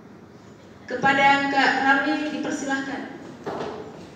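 A young woman speaks through a loudspeaker in an echoing hall.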